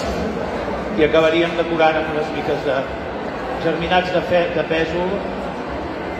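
A man speaks clearly through a microphone over loudspeakers, echoing in a large hall.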